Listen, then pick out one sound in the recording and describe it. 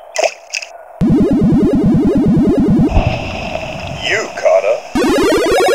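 Buzzing electronic game sounds rise and fall as a fish is reeled in.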